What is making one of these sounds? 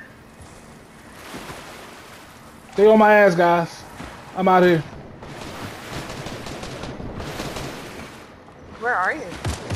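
Water splashes steadily as a swimmer moves through it.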